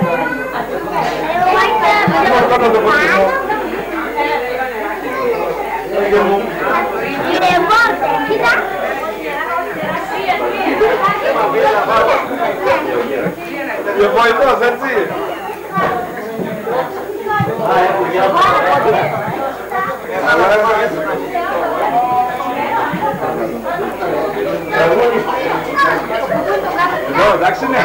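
A man talks in a lively way nearby.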